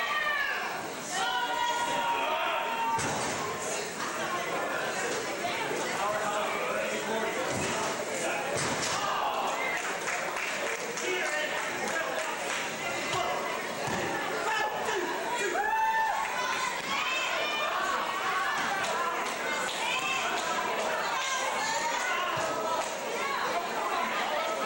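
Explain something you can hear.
A crowd shouts and cheers loudly in an echoing hall.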